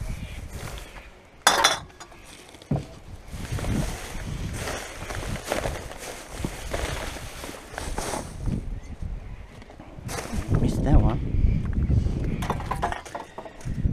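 Cans and bottles clink and rattle.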